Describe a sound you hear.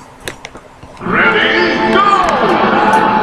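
Loud game music and sound effects play from a television speaker.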